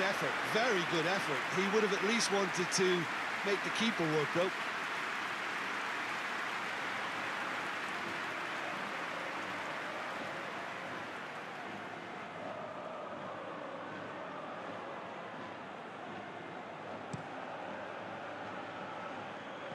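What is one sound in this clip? A large stadium crowd roars steadily and slowly quietens.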